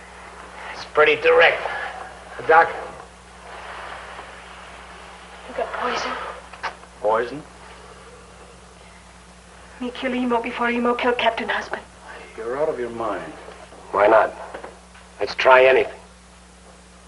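A man speaks in a low, strained voice, close by.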